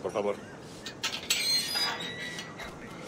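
A metal gate creaks open.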